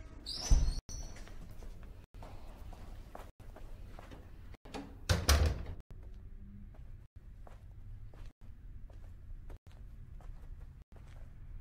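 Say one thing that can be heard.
Footsteps walk slowly across a wooden floor.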